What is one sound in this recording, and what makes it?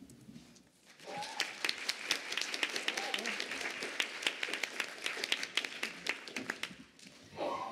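An audience claps and applauds.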